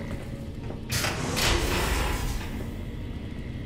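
A heavy metal door slams shut.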